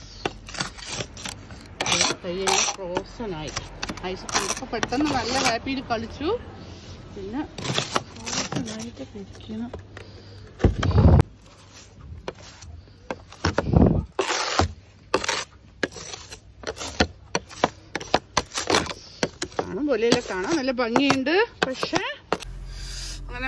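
A brush scrapes and swishes snow off a car's windows.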